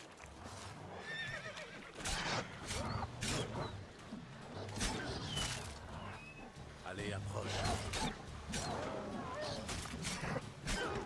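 Wolves snarl and growl.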